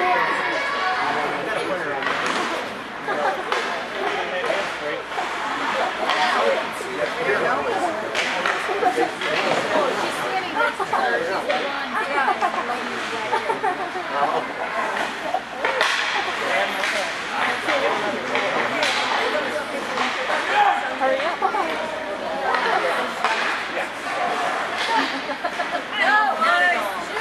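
Players shout to one another across the ice.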